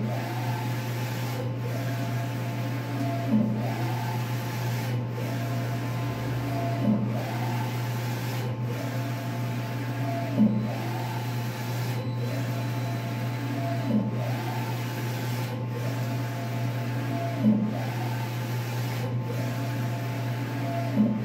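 A large printer hums steadily.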